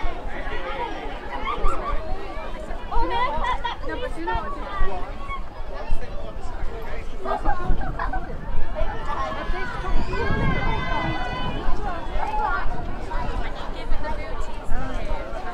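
Several people chat and laugh nearby.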